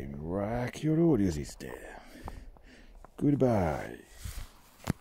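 A man talks calmly to a dog, close by.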